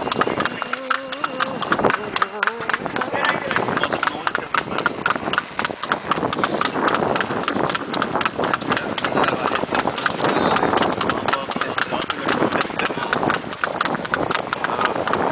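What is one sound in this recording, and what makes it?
A horse's hooves clop quickly and steadily on a paved road.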